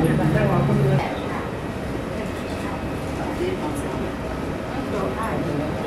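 Men and women talk quietly nearby.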